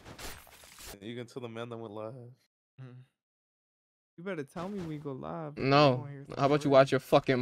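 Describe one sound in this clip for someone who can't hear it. A young man talks with animation through a microphone.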